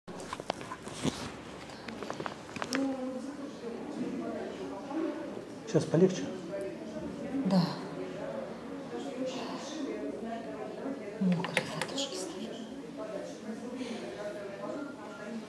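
A woman talks calmly and close by.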